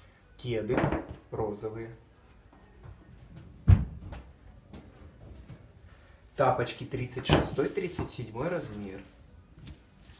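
Shoes are set down and slid on a hard surface with soft taps.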